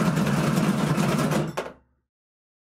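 Dice rattle and tumble across a hard surface.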